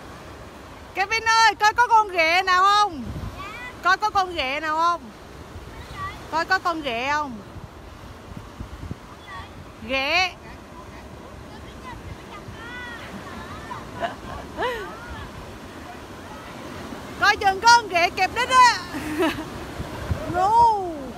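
A young child shrieks and squeals excitedly close by.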